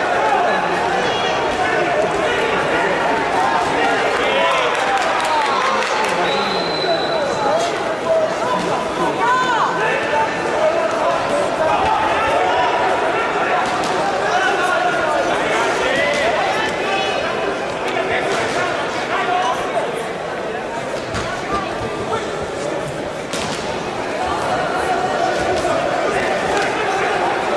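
A crowd of people chatters throughout a large echoing hall.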